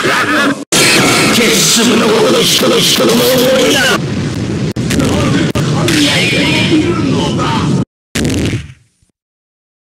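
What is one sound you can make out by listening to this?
Video game punches and energy blasts crackle and thud in rapid bursts, then cut off into silence.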